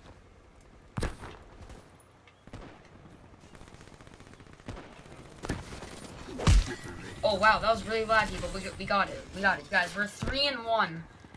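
Game punches and hits thud sharply.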